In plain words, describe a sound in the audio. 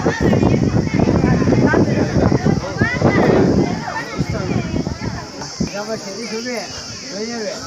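A crowd of men and women talks loudly all around.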